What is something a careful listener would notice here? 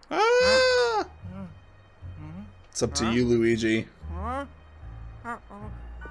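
A cartoon man whimpers and gasps in fright.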